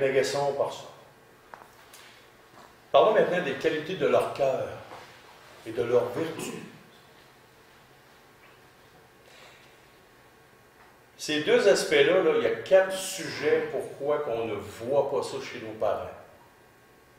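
A man speaks calmly and thoughtfully, in pauses, close to a microphone.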